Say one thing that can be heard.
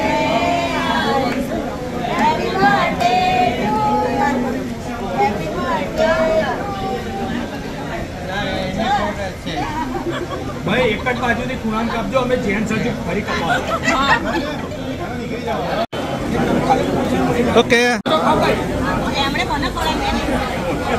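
A crowd of men and women chatter and laugh.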